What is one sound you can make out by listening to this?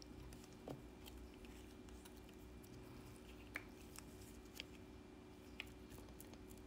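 Small plastic clicks and taps sound close by.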